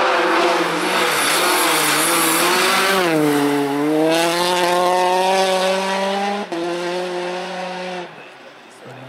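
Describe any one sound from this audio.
A rally car engine roars loudly and revs as the car speeds past.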